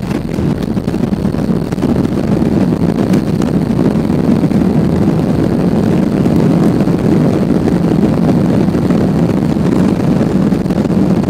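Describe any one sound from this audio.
Jet engines roar louder as they slow the plane.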